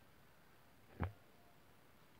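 A marker taps once on paper.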